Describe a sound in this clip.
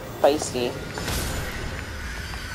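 A magical blast whooshes out with a bright ring.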